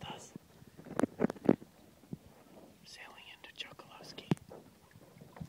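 A sail flaps and snaps in the wind.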